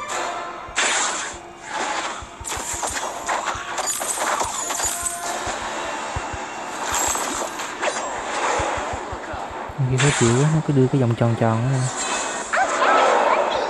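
Game characters clash with swords and spell effects in a battle.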